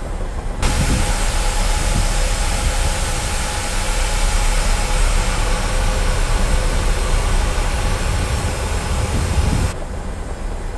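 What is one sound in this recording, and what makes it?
A jet airliner's engines roar and whine loudly as it taxis.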